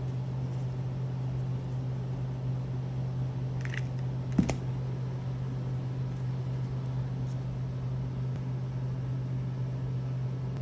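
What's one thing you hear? Small beads click against each other.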